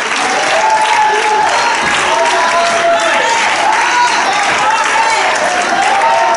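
A man claps his hands in rhythm.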